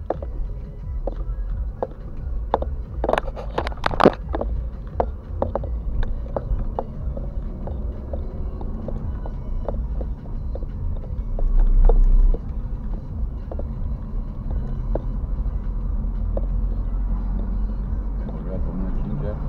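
Tyres rumble and knock over a rough road surface.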